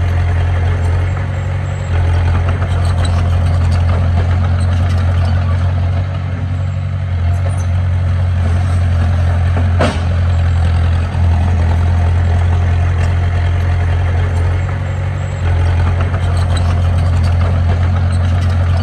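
Bulldozer tracks clank and squeak as they move.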